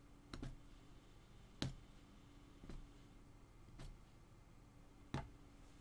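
A needle tool punches through taut cloth with soft, regular thuds.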